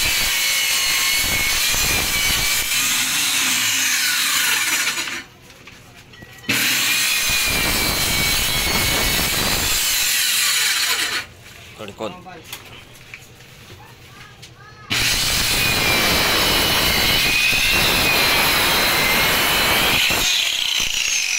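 A power saw whines loudly as it cuts through wood.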